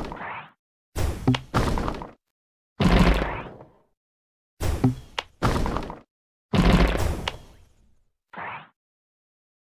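A short rising whoosh sounds as a bubble is shot.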